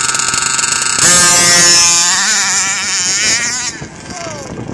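A small model car races away with its engine roaring, then fades into the distance.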